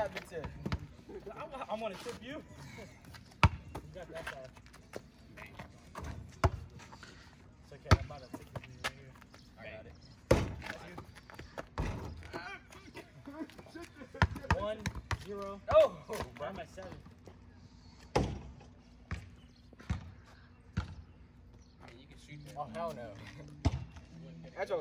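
A basketball bounces on asphalt outdoors.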